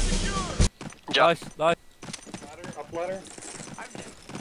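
A young man speaks casually into a microphone.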